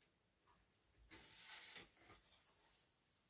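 A string rubs and hisses as it is pulled.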